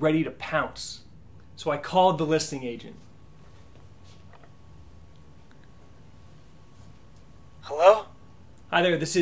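A young man speaks calmly and close by, pausing between phrases.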